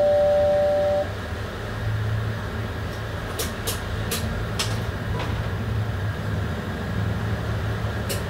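A train rumbles and hums steadily on the tracks.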